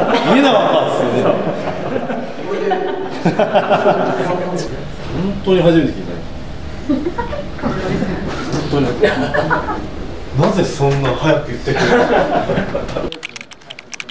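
A man talks cheerfully and laughs close by.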